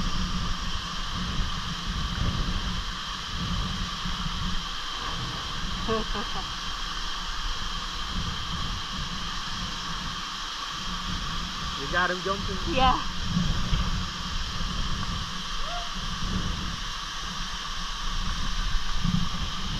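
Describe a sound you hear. A waterfall roars steadily, splashing into a pool.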